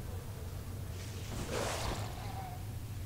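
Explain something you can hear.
A magic spell bursts with a short whoosh.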